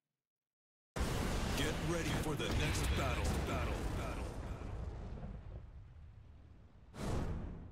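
Flames roar with a loud whoosh.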